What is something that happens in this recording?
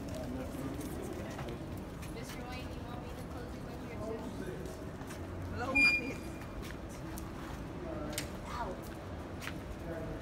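Men and women talk quietly nearby.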